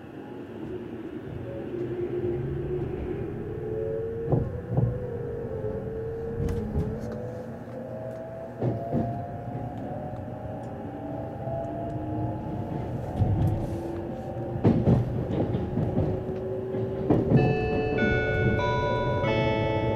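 A train's motor whines, rising in pitch as the train gathers speed.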